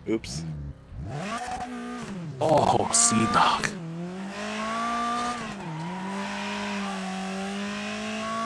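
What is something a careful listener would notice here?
A car engine revs and whines as it speeds up.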